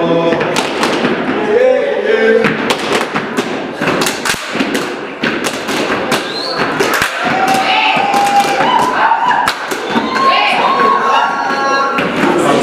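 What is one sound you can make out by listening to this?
Rubber boots stomp and slap in a quick, rhythmic beat.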